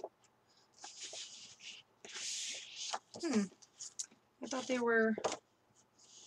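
Sheets of paper rustle and flap as they are shuffled close by.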